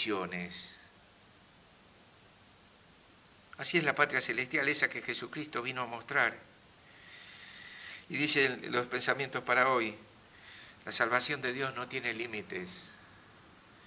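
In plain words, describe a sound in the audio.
An older man speaks calmly into a microphone, with pauses.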